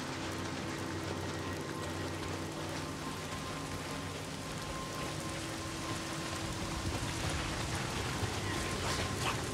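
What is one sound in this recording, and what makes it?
Footsteps rustle quickly through dry grass.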